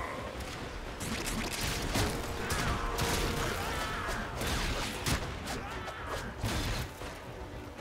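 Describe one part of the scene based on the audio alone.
Bursts of impact crack and boom in quick succession.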